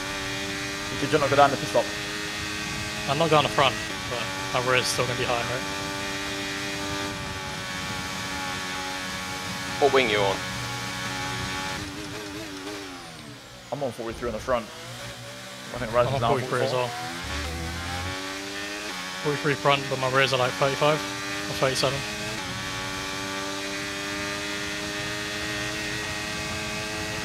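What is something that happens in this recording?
A racing car engine whines steadily at high revs.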